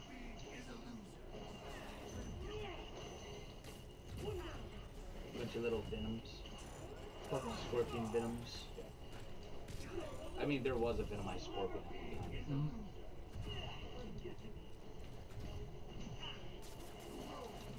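Young people talk and laugh with animation, close to a microphone.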